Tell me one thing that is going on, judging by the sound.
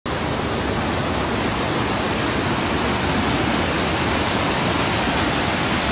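Muddy floodwater rushes and churns steadily outdoors.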